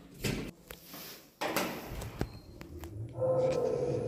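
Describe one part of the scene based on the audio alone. A lift button clicks.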